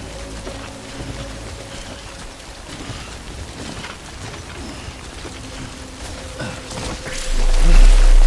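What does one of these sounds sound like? Footsteps crunch on grassy, rocky ground.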